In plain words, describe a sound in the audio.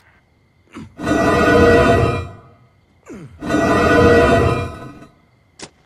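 A heavy window swings open with a loud scrape.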